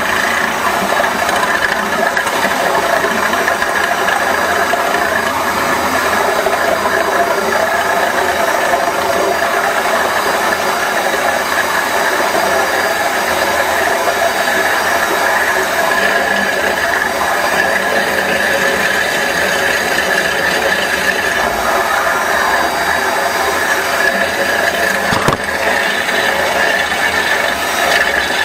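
A flexible drain-cleaning shaft whirs steadily as it spins inside a pipe.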